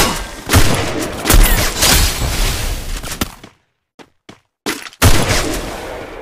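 A barrier wall in a video game slams up with loud booming bursts.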